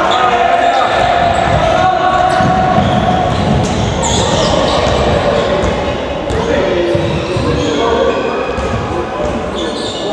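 A ball bounces on the court floor.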